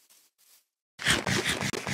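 Bread is munched noisily.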